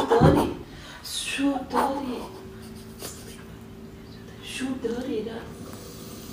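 An older man answers from across the room.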